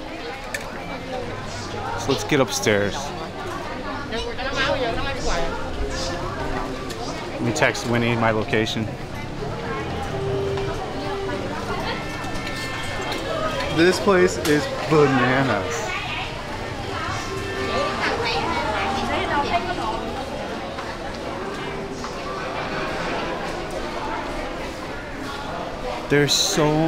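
A crowd of shoppers chatters all around.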